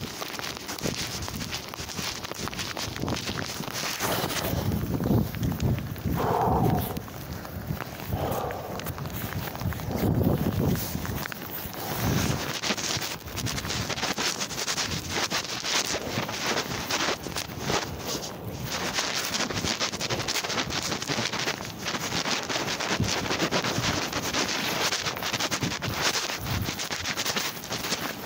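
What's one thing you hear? Jacket fabric rustles and scrapes right against the microphone.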